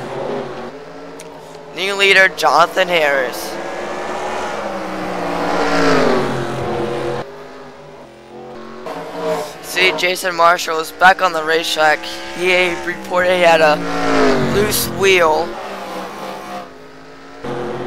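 Race car engines roar and whine as the cars speed around the track.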